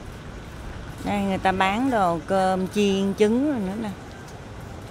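A woman speaks nearby in a lively voice.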